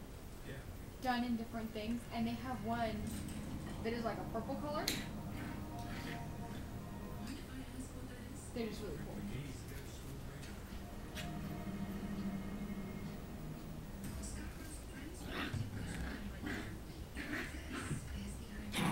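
Small puppies yip and whine while playing.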